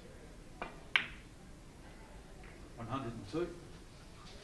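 Billiard balls click against each other as they roll.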